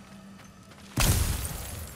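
A magical burst whooshes loudly.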